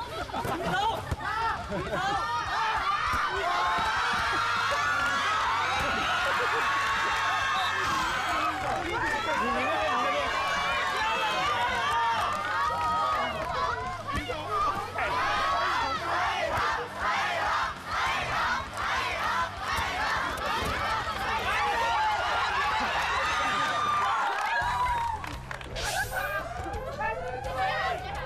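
A crowd of young people cheers and shouts excitedly outdoors.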